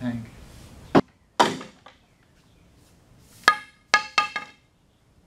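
A hammer strikes metal with a ringing clang.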